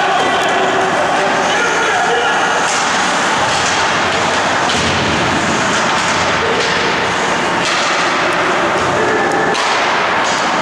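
Ice skates scrape and hiss across the ice in a large echoing hall.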